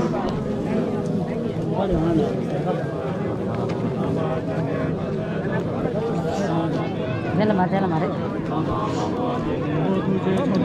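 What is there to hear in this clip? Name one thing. A crowd of people murmurs and chatters nearby, with many voices overlapping.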